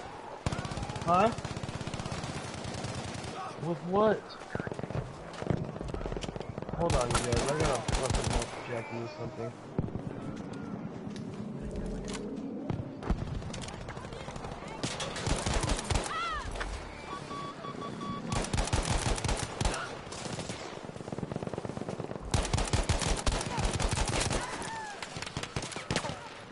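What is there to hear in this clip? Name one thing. Gunfire crackles in sharp bursts.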